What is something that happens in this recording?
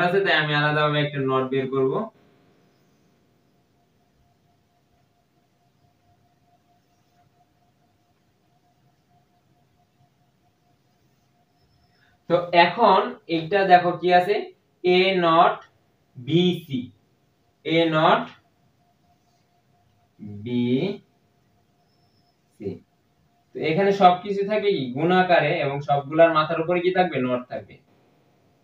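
A young man speaks calmly and clearly, explaining.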